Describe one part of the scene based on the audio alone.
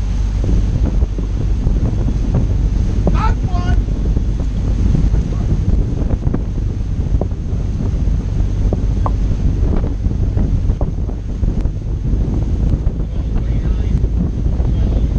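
Water churns and splashes in a boat's wake.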